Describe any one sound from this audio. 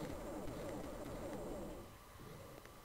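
A plasma gun fires with a buzzing zap.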